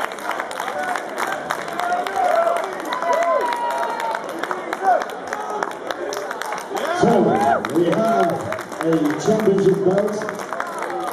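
A crowd of spectators cheers and shouts in a large echoing hall.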